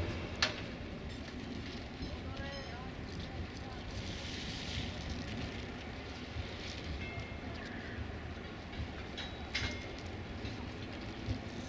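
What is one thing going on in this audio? A distant train approaches with a faint rumble.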